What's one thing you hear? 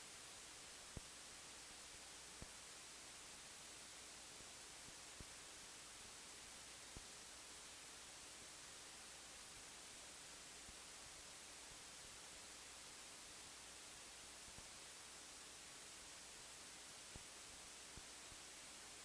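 Bare feet softly thump and pad on a hard floor.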